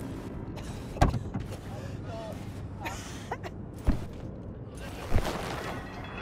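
A car door opens and thuds shut.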